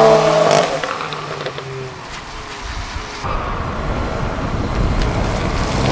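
A heavy car engine rumbles as the car drifts by.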